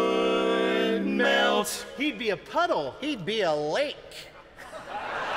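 Four men sing in close harmony.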